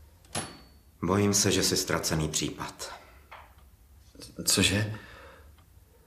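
A man speaks close by, strained and uneasy.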